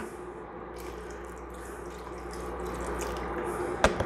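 Broth pours from a carton into a pot.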